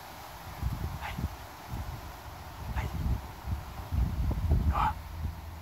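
A puppy whimpers softly in short, high cries.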